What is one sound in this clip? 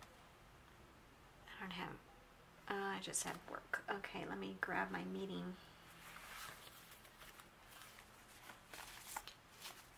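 Paper sheets rustle as they are handled.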